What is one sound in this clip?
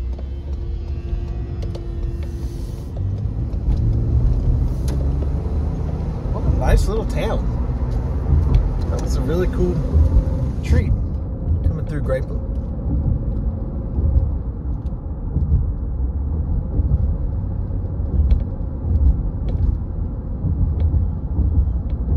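A car engine hums steadily as tyres roll over the road from inside the car.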